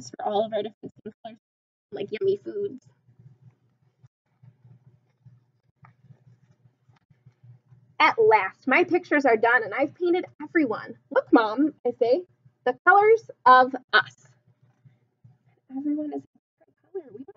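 A young woman reads aloud with animation, close to a microphone.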